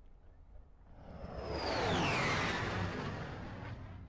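A spaceship whooshes past and fades.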